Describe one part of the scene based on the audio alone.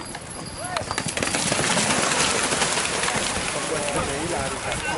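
Horses gallop through shallow water, splashing loudly.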